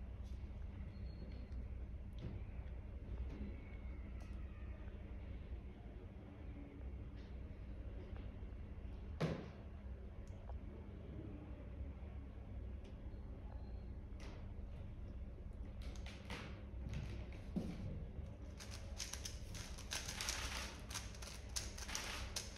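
A plastic puzzle cube clicks and rattles as it is twisted quickly.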